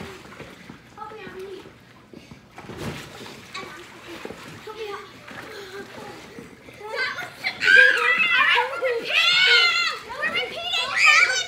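Young girls talk and shout excitedly nearby, outdoors.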